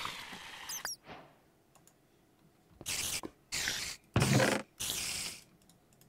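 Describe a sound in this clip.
A game spider hisses.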